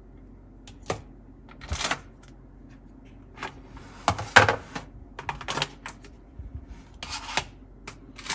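Plastic pieces click and clatter as a hand handles them.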